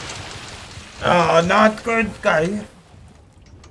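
A man talks with animation through a close microphone.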